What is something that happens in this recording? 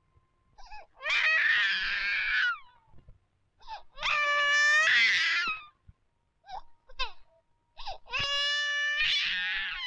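A baby cries loudly in bursts.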